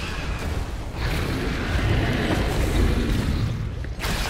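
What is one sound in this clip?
Fire roars in a sudden burst.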